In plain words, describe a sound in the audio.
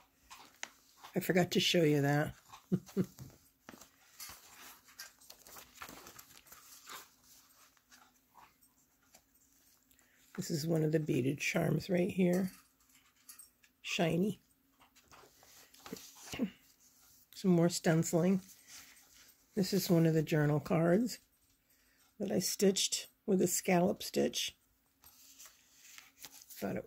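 Stiff paper pages rustle and flip as they are turned by hand.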